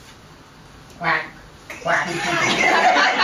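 Women and men sing together in a group.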